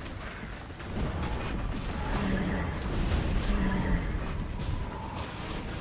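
Fiery explosions boom and roar.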